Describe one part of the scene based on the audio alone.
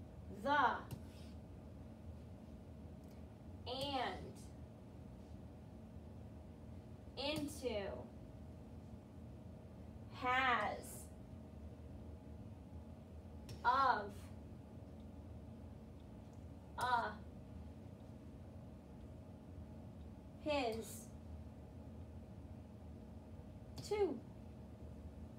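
A young woman speaks up close, reading out single short words one at a time, with pauses between them.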